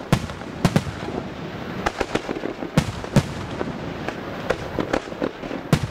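Fireworks burst with loud booms and bangs.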